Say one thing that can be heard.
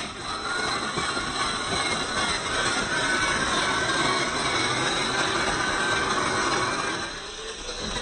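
A small electric motor whines as a toy truck drives.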